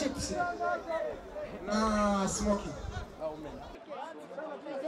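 Young men shout and talk loudly outdoors, close by.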